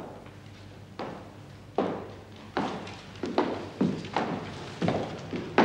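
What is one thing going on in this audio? Boots step across a stone floor in an echoing room.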